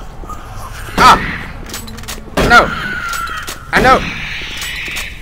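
Gunshots boom.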